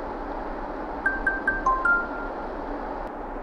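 A phone plays a quick run of short notification beeps.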